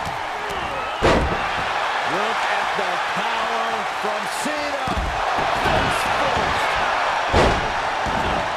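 A heavy body thuds onto a wrestling ring mat with a loud slam.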